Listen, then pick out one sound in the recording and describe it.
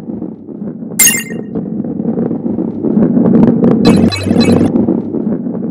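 A bright chime rings as a coin is collected.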